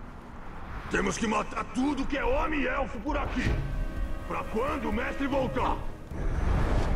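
A man talks calmly into a headset microphone.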